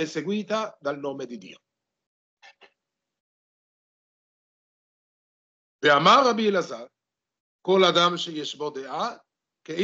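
An elderly man speaks calmly over an online call, pausing between phrases.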